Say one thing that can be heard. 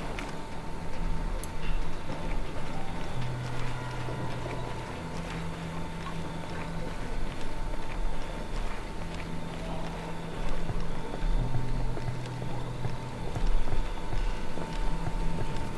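Footsteps crunch over gravel and dirt.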